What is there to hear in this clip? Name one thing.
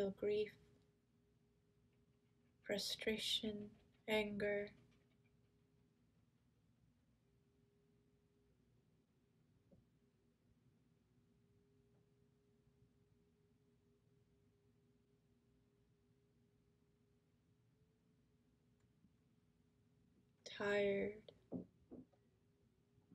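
A middle-aged woman speaks softly and calmly, close to a microphone, with long pauses.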